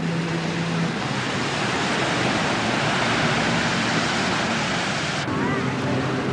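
Waves wash onto a beach nearby.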